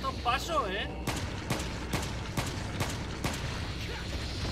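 Gunshots ring out in quick succession.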